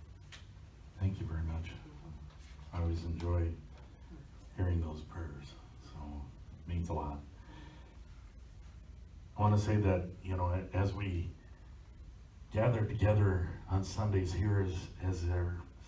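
An elderly man speaks with animation through a microphone.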